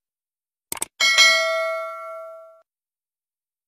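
A bell chimes and rings out.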